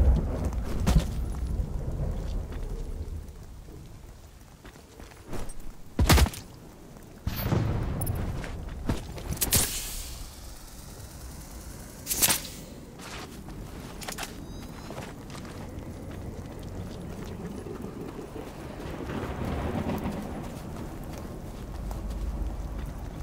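Footsteps rustle through grass.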